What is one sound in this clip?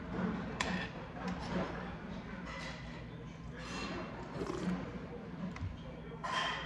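A spoon clinks against a stone bowl.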